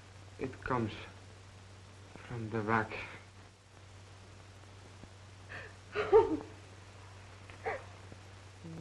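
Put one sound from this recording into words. A woman speaks softly and anxiously.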